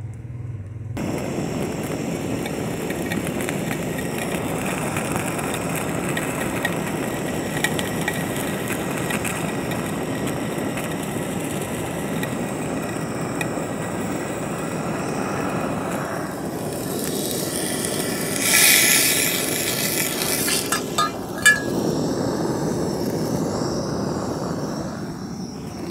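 A gas torch roars steadily with a rushing hiss.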